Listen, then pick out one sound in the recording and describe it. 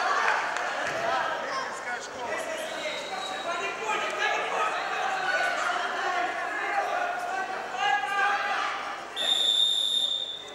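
A crowd of young people shouts and cheers loudly in an echoing hall.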